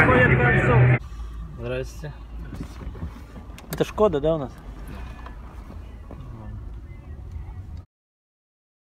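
A car engine hums softly from inside the car.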